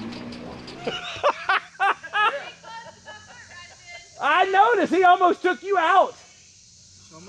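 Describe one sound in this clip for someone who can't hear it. A man laughs loudly up close.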